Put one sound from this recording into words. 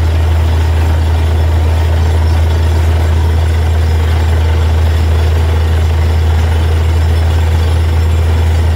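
A drilling rig engine roars loudly and steadily up close.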